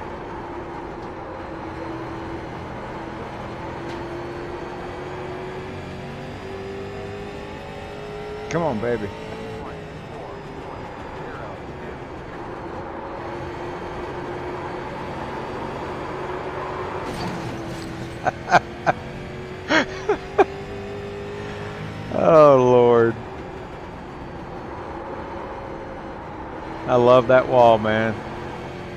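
A race car engine drones steadily, rising and falling in pitch.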